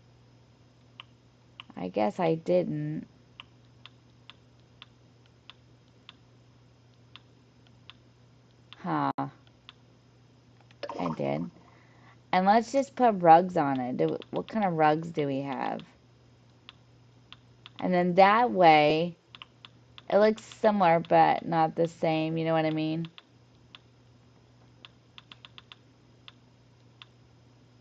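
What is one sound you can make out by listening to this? Soft clicks tick as a menu cursor moves through a list.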